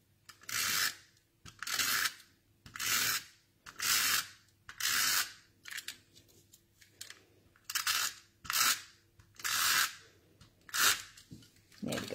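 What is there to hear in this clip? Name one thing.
A blade slices through paper in quick, repeated strokes.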